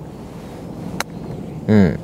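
A golf club strikes a ball with a crisp click.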